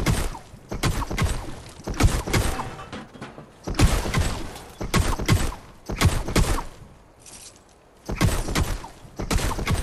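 A game character's pickaxe strikes walls with sharp knocks.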